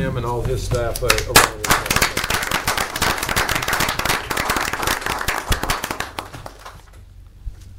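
A room full of people applauds.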